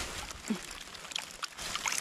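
Water sloshes as a hand rinses a stone.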